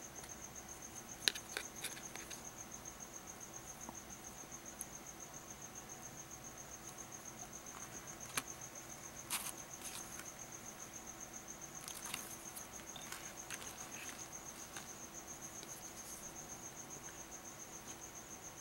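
A plastic tool scrapes and rubs across a sticker.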